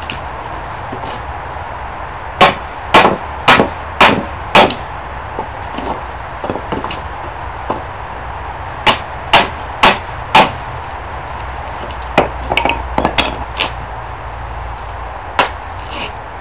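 Wood splits and cracks apart.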